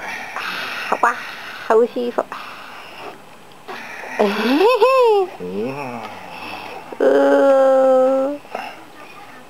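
A baby coos and squeals close by.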